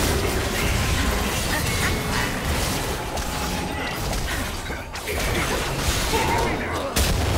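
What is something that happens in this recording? Game spell effects whoosh and crackle in a fight.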